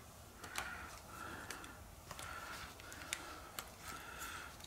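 Small items tap and click against a hard surface.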